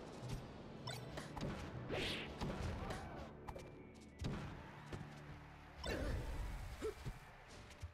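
Punches and blasts from a fighting game crack in quick bursts.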